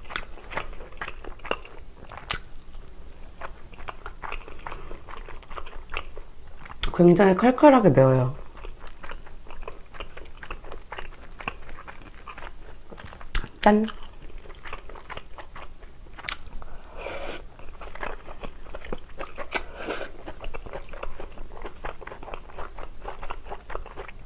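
Chopsticks click against a plastic bowl.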